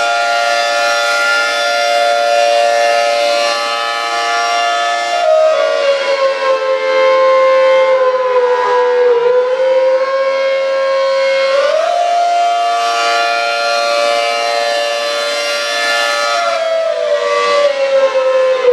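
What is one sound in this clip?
A loud siren wails steadily, its pitch dipping and rising as it rotates.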